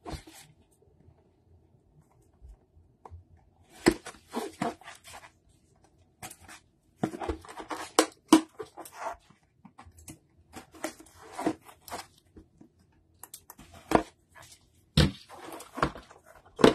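Plastic wrap crinkles and rustles as gloved hands handle a box.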